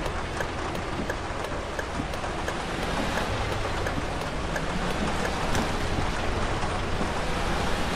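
A bus engine rumbles steadily.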